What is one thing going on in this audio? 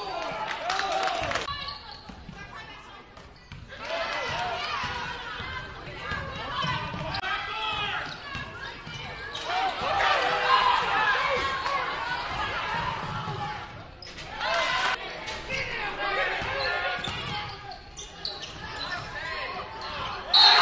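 A basketball thuds as it bounces on the floor.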